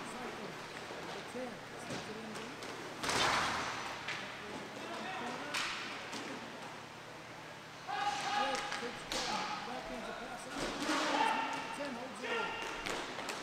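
Skate wheels roll and scrape across the rink floor.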